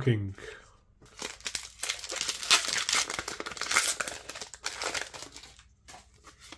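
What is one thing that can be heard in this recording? A foil wrapper crinkles and tears as it is opened.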